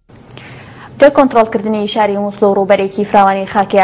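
A young woman speaks calmly and clearly into a microphone, reading out.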